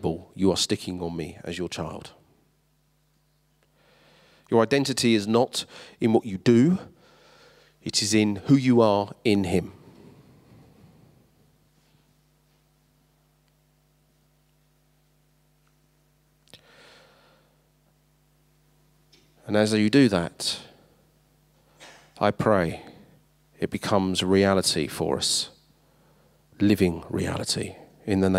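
A man speaks with feeling through a microphone and loudspeakers, with pauses, in a large echoing hall.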